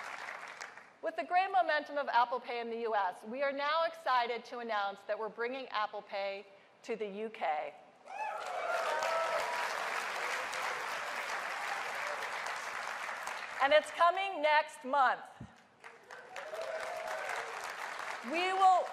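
A woman speaks clearly and warmly into a microphone over loudspeakers.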